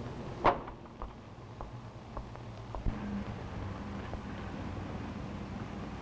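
Footsteps tap slowly on a pavement.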